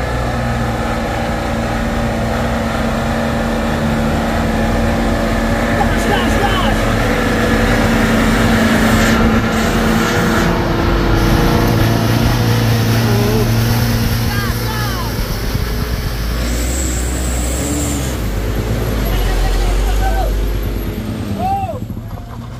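A truck engine rumbles and labours close by.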